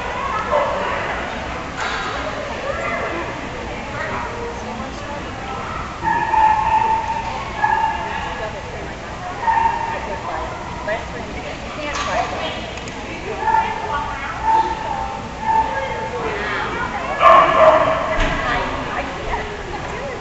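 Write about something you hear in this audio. A woman calls out sharp commands to a dog in a large echoing hall.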